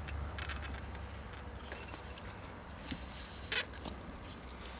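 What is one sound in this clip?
Pliers crimp a wire connector with a short squeeze.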